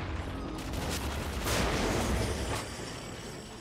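A fiery magical blast roars.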